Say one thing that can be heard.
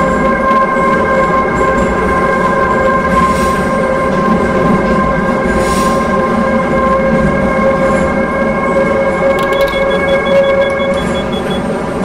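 A train's motor whines with a steady hum.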